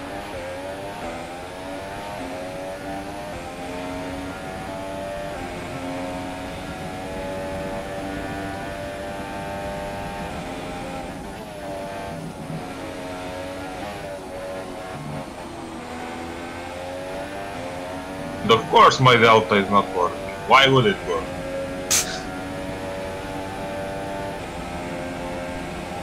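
A racing car engine screams at high revs, rising and falling through gear changes.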